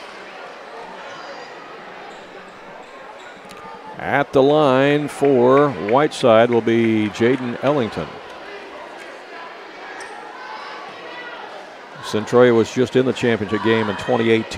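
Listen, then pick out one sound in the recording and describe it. A crowd murmurs throughout a large echoing hall.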